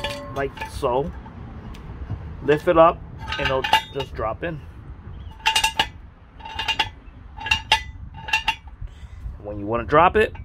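A metal jack stand's ratchet clicks as its post is raised.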